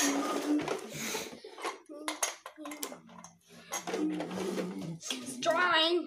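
Plastic toys clatter and knock on a wooden floor.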